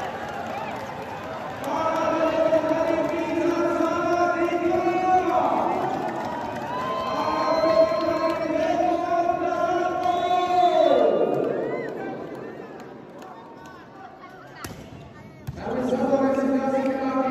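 A large crowd cheers and chants loudly in a big echoing hall.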